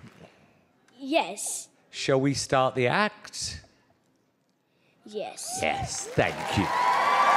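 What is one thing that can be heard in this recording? A young boy speaks into a microphone.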